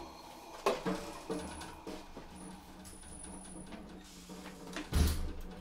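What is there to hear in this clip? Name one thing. A drummer hits drums and cymbals in short bursts.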